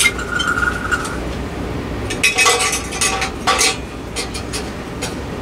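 Several ceiling fans whir and hum steadily.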